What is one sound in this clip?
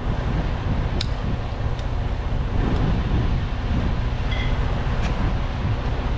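Metal parts clink as a man handles them.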